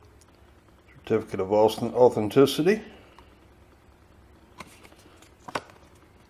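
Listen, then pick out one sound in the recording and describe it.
A stiff paper card rustles and taps in a hand.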